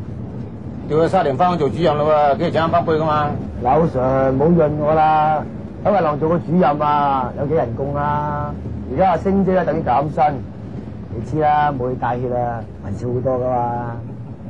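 A second man answers nearby.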